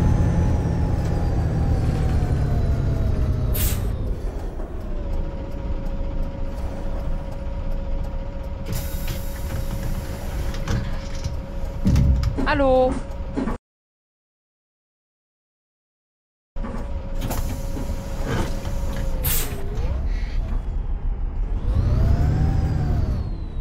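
A bus engine hums and rumbles steadily.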